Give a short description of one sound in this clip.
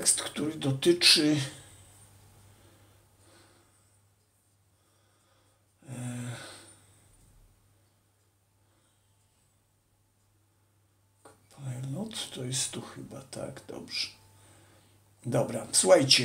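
An older man speaks calmly and close by, in short bursts with pauses.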